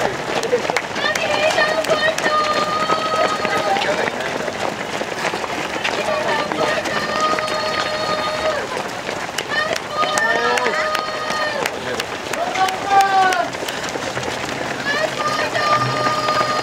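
Spectators nearby shout and cheer loudly.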